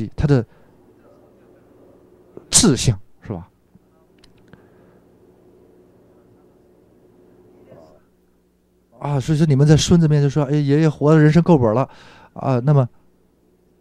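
A middle-aged man speaks with animation to a room.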